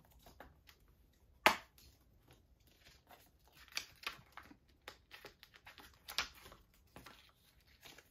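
Items shuffle and tap on a desk.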